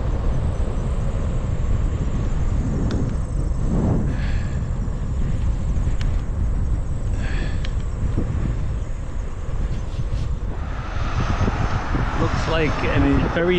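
Wind rumbles steadily across a moving bicycle.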